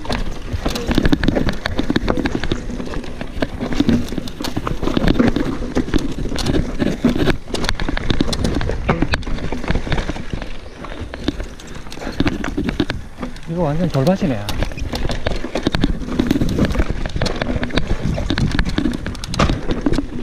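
A bicycle frame and chain rattle and clatter over bumps.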